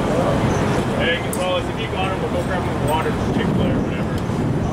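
A man talks nearby, outdoors.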